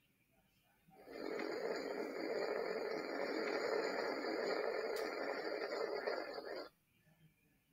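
A rocket roars steadily.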